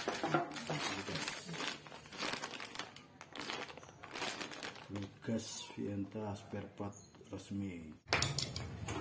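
A plastic bag crinkles and rustles close by.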